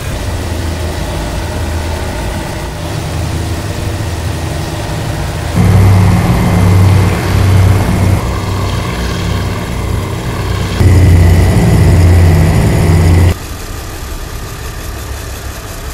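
Propeller engines of a plane drone steadily.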